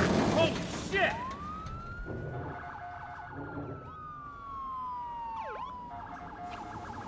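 A police siren wails and fades.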